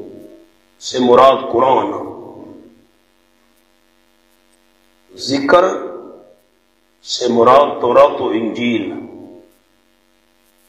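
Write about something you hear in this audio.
A man speaks into a microphone in short phrases with long pauses.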